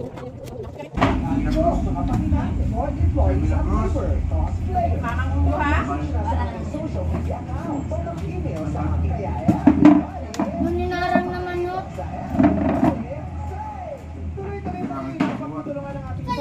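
Several people chatter and laugh close by.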